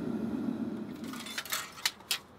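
A furnace roars steadily.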